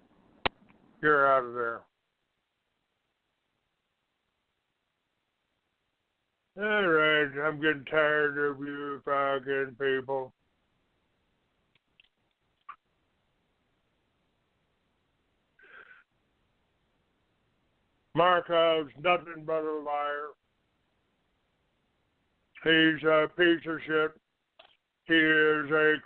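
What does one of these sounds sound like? An elderly man talks with animation over a phone line, with pauses between phrases.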